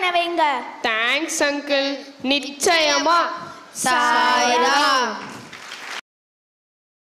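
Young children chant together in a high, sing-song voice through a microphone.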